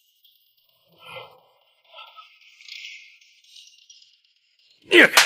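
A man speaks quietly nearby.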